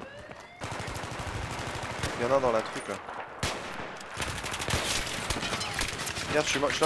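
Rapid gunfire rattles close by.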